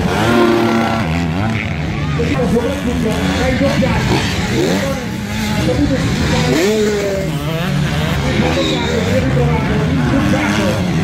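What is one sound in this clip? Dirt bike engines rev and whine loudly, rising and falling in pitch.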